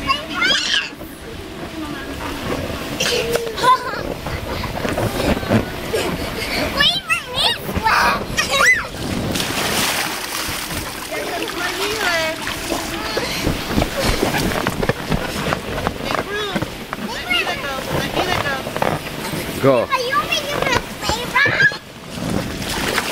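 Young children shout and squeal excitedly close by.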